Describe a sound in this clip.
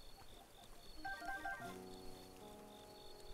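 Game menu chimes play a short tune.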